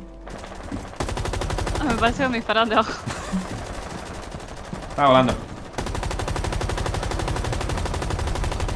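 Rapid automatic gunfire rattles from a video game.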